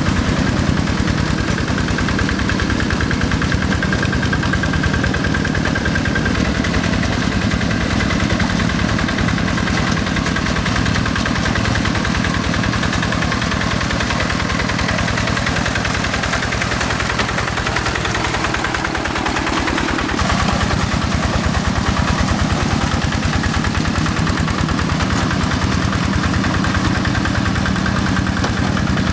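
A small diesel engine chugs steadily close by.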